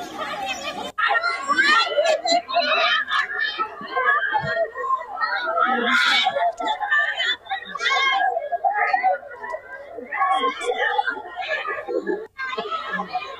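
A crowd of women shouts and wails close by.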